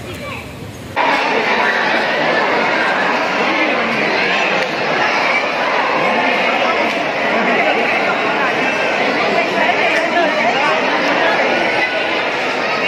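A crowd murmurs and chatters in a busy echoing hall.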